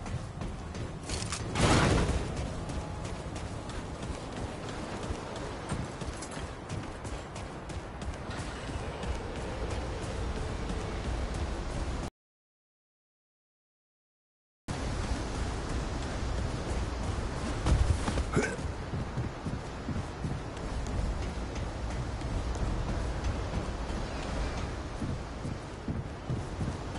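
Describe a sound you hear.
Footsteps thud quickly on hard ground and gravel.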